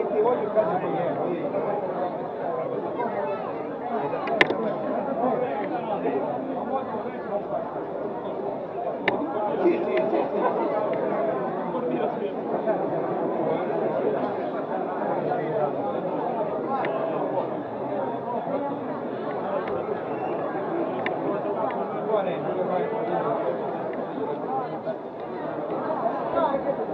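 A crowd of men and women chatters close by, outdoors.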